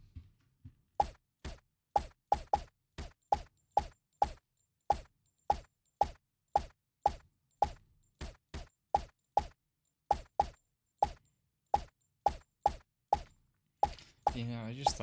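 A silenced pistol fires in quick, regular shots.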